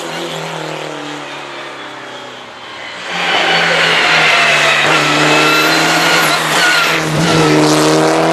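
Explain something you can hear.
A second rally car engine revs hard and whines through gear changes as the car approaches and passes.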